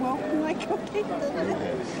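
An elderly man laughs close by.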